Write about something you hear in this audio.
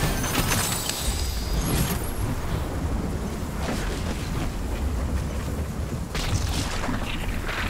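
Footsteps run quickly across grass and dirt.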